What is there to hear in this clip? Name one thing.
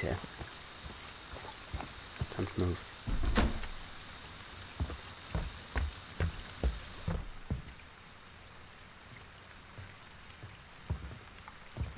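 Heavy footsteps thud slowly on the ground and wooden boards.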